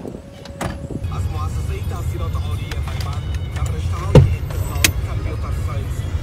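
A car engine rumbles from inside the car.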